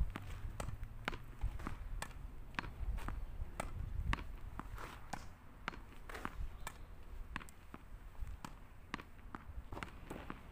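A tennis ball thuds against a wall.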